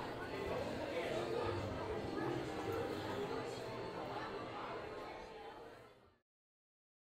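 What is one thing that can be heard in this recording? A crowd of people chatters and walks along a busy outdoor path, fading out.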